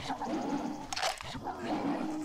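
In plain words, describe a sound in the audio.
A short metallic click rings out as ammunition is picked up.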